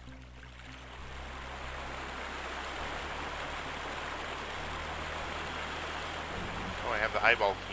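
Water sloshes steadily as someone wades through it.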